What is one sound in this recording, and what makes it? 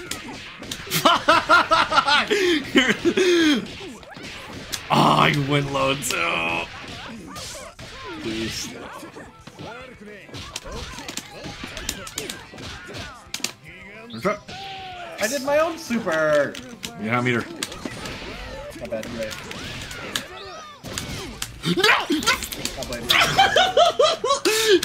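Fighters grunt and shout with each attack.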